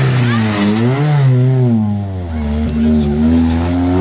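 Tyres screech on asphalt as a rally car slides through a turn.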